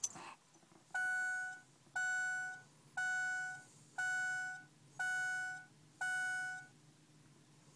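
A car's warning chime dings in a steady, evenly spaced series.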